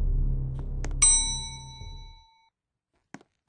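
An elevator bell chimes once.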